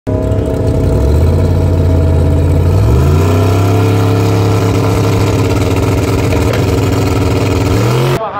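A loud truck engine idles with a deep, rough rumble and revs up in steps.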